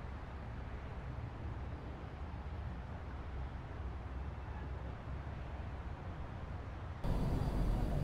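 A car engine idles with a low steady rumble.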